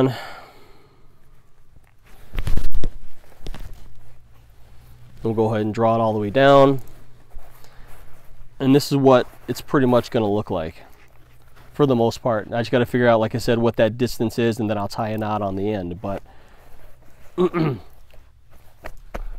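A soft leather pouch rustles as its drawstring cord is pulled shut.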